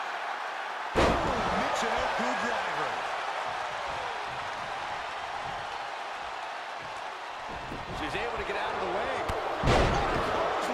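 A body slams down hard onto a wrestling mat with a loud thud.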